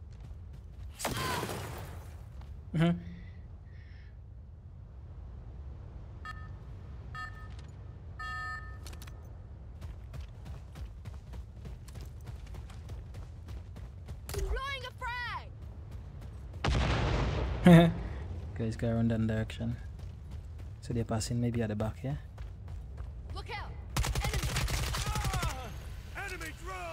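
Gunfire rings out in short, loud bursts.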